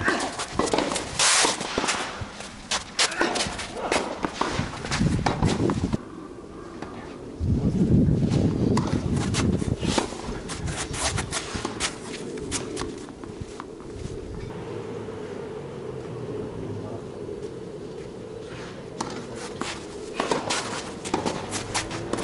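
A tennis racket strikes a ball with sharp pops, back and forth in a rally.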